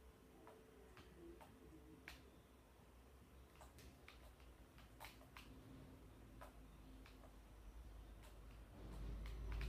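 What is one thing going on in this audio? A video game plays quietly through a television, with short clicking and tapping sounds.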